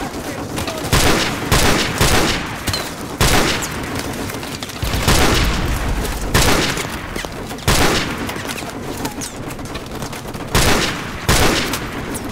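Rifle shots crack loudly, each with a booming echo.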